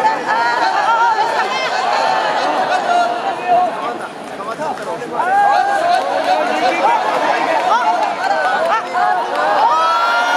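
Spectators shout in a large echoing hall.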